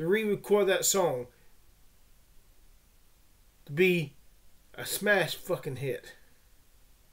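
A man speaks with animation close to a microphone, in short bursts.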